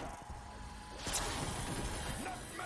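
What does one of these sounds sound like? An electric blast crackles and hisses.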